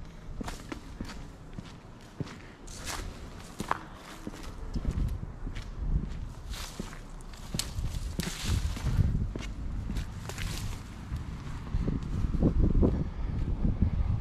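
Footsteps crunch over dry grass and twigs.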